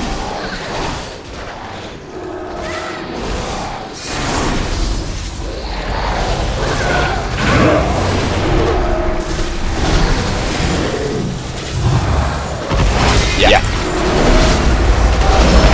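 Weapons strike with heavy thuds.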